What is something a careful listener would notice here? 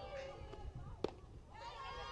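A softball smacks sharply into a catcher's mitt.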